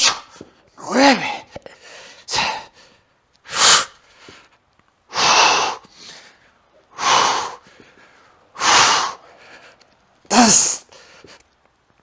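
A man exhales forcefully in sharp bursts with each lift.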